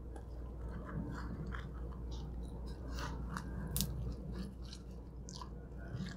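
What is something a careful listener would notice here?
A pizza crust tears and crackles close by.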